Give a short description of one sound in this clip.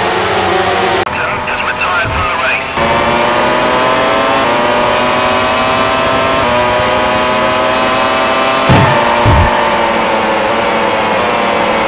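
A racing car engine drones steadily at high revs, rising and falling in pitch.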